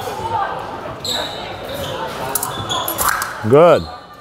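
Fencing blades clink and scrape together.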